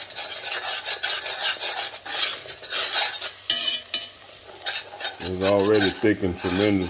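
A spoon scrapes and stirs thick sauce in a pan.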